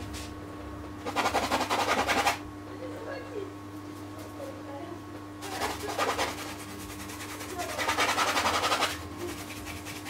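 A paintbrush scrubs against canvas.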